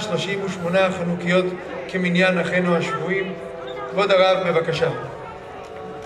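A man chants loudly through loudspeakers outdoors.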